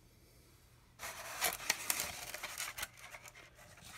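A cardboard egg carton creaks and rustles as its lid is opened.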